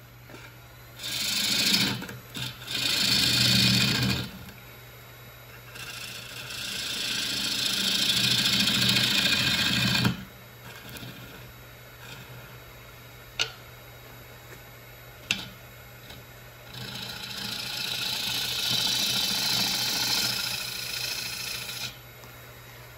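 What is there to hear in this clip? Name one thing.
A gouge scrapes and shaves the spinning wood in bursts.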